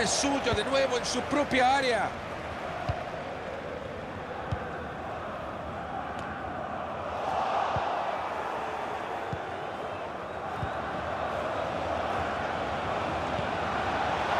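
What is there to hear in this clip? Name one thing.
A stadium crowd murmurs and roars.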